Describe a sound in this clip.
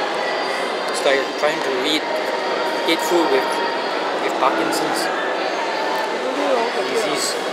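A young man talks close by in a calm voice.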